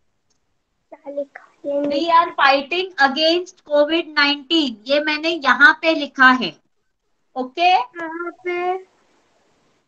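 A young girl speaks over an online call.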